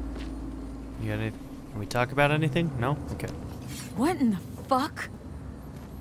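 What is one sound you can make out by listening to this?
A man speaks calmly and close by, with a rough voice.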